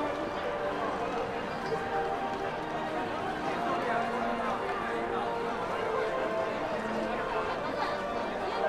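A crowd of people chatter outdoors in a steady murmur.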